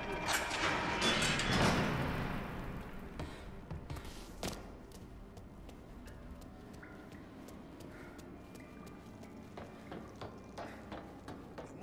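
Footsteps tread across a wooden floor.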